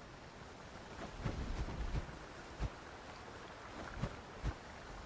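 Water splashes as feet run through a shallow stream.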